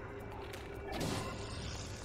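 An explosion bursts with a loud crack.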